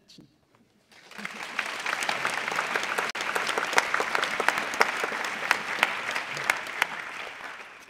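An audience claps and applauds loudly.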